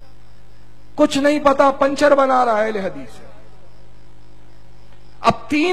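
A man speaks with a chanting voice through a loudspeaker in a large echoing space.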